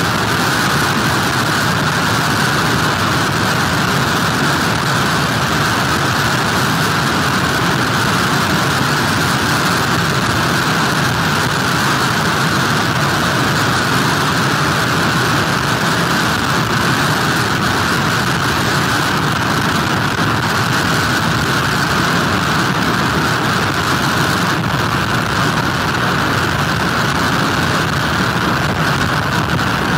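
Heavy surf crashes and rumbles onto the shore.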